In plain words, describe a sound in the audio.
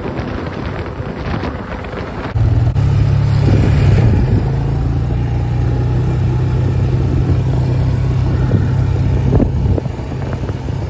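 Tyres crunch over a gravel track.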